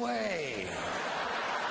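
An elderly man exclaims with animation through a microphone.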